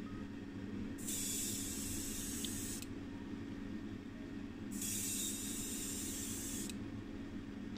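An airbrush hisses in two short bursts of spray.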